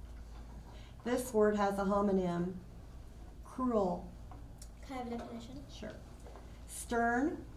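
A girl speaks clearly into a microphone.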